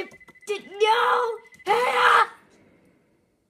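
An explosion bursts from a game's speakers.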